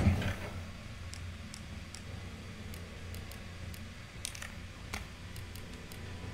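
Short menu clicks tick one after another.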